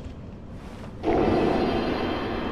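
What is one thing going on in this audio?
A fire ignites with a sudden whoosh.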